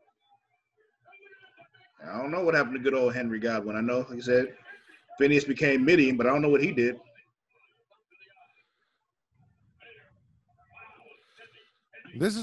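A second man responds quietly over an online call.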